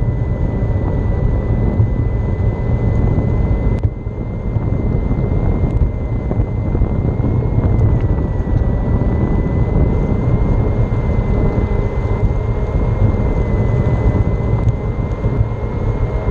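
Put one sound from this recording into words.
An electric motor whines steadily.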